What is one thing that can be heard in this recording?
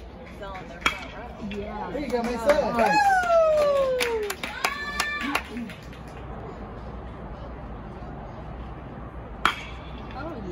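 A metal bat cracks sharply against a ball.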